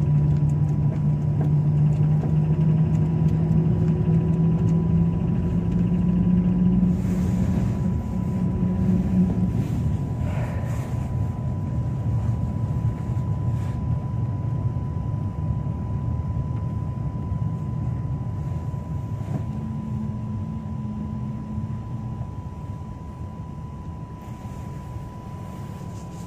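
A vehicle engine hums steadily.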